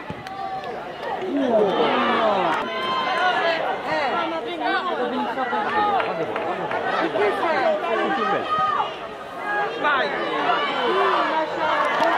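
A crowd of spectators shouts and cheers excitedly outdoors.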